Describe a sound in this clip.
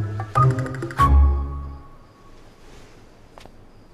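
A candle flame is blown out with a short puff.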